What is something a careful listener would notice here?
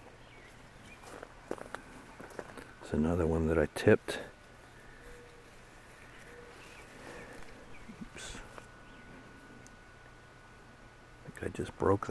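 Leaves rustle as a hand brushes through a bush.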